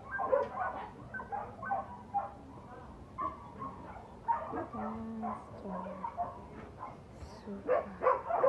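A woman talks softly and warmly close by.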